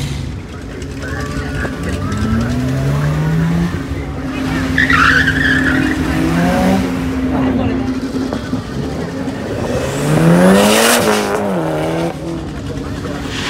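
Car engines rev and roar as cars accelerate past one after another.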